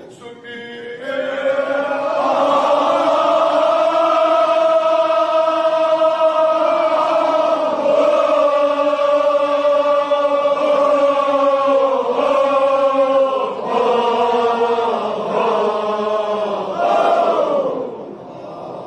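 A crowd of men chants loudly together in a large echoing hall.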